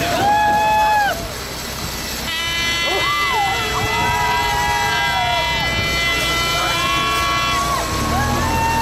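A truck engine rumbles as the truck drives slowly past.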